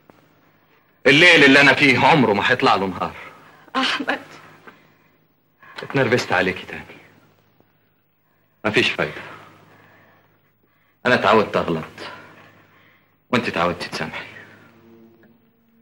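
An older woman speaks in an anxious, pleading voice.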